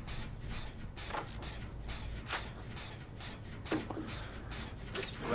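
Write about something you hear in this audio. Metal parts clank and rattle as an engine is worked on.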